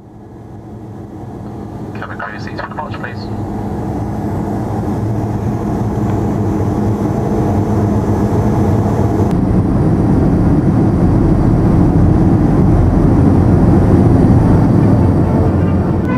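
A jet engine roars close by, growing steadily louder.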